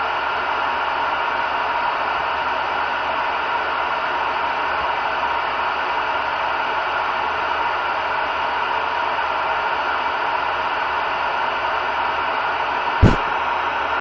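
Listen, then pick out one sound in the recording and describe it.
Static hisses steadily from a radio receiver's speaker.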